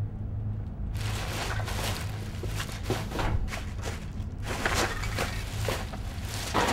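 A plastic garbage bag rustles and crinkles loudly as it is swung and tossed.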